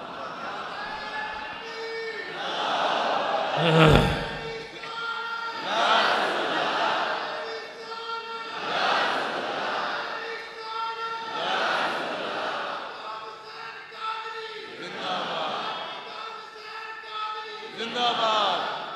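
An elderly man speaks forcefully into a microphone, his voice rising and falling in bursts over loudspeakers.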